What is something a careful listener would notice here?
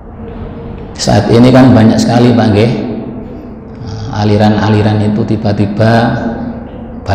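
A middle-aged man chants a recitation through a microphone in a slow, melodic voice.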